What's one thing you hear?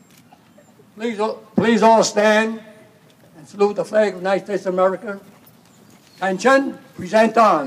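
A crowd of people sings together close by.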